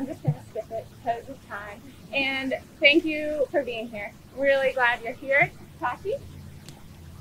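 A young woman speaks calmly into a microphone outdoors.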